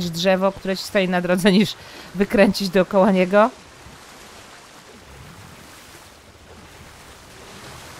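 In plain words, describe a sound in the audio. Water splashes as a large creature swims.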